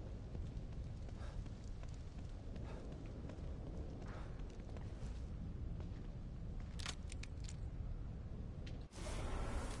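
Footsteps shuffle softly on pavement outdoors.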